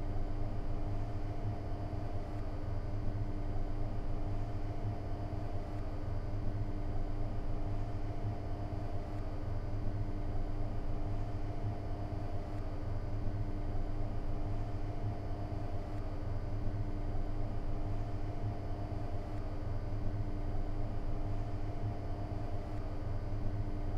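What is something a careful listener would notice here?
A train's electrical equipment hums steadily while standing still.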